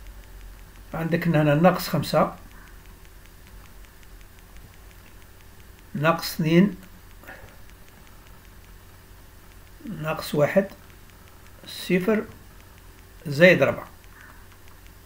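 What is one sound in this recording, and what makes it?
A man speaks calmly in short phrases close to a microphone.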